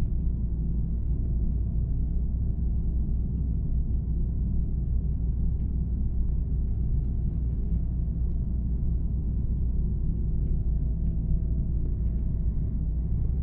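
A bus engine hums steadily at a low pitch while driving.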